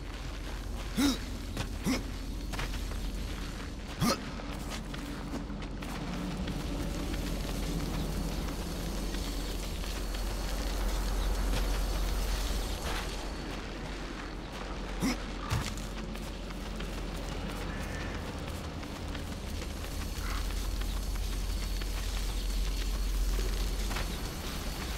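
Hands grip and scrape against a stone wall while climbing.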